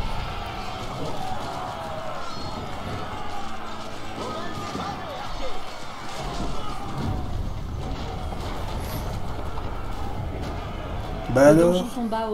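Weapons clash and soldiers shout in a noisy battle.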